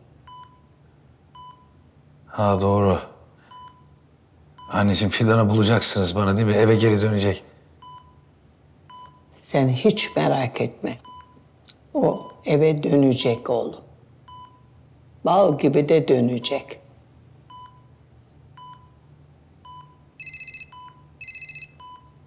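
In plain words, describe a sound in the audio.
A hospital monitor beeps steadily at a regular pace.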